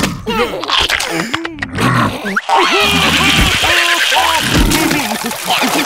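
High, squeaky cartoon voices shriek and babble excitedly.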